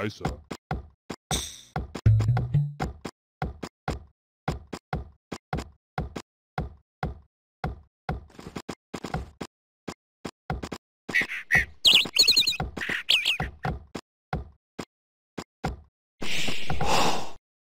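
Axes chop wood in a quick, steady rhythm.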